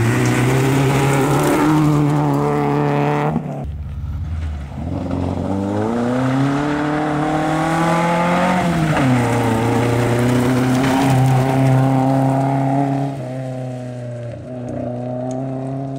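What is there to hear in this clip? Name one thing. A rally car engine roars loudly, revving up and down through the gears as it speeds past.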